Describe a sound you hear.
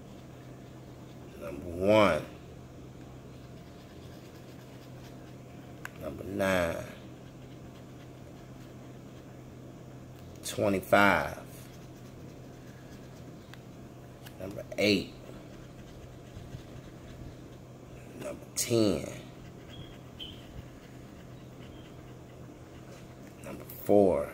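A coin scratches across a scratch card.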